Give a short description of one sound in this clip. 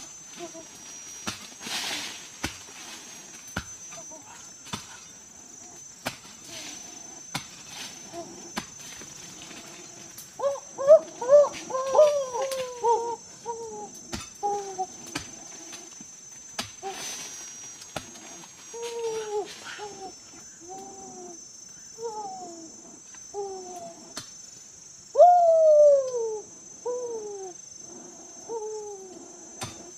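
Twigs and branches snap and crack as men handle wood.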